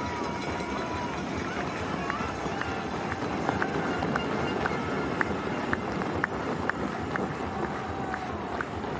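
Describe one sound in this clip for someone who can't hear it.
A crowd of spectators cheers and claps steadily outdoors.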